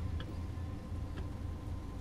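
A windscreen wiper swishes across glass.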